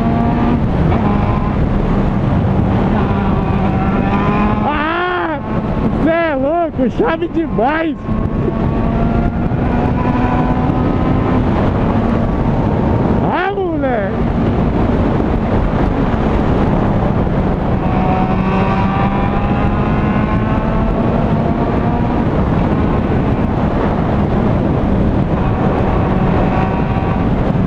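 A motorcycle engine drones steadily close by.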